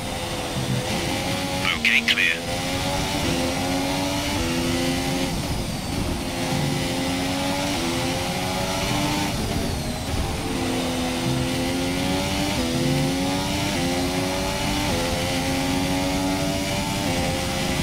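A racing car engine screams, rising in pitch and dropping with each gear change.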